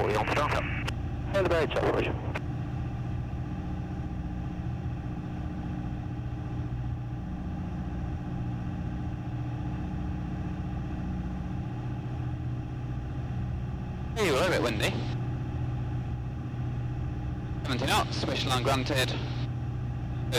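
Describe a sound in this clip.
A single-engine propeller plane with a four-cylinder piston engine drones in flight.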